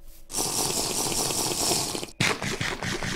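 A potion is gulped down in quick swallows.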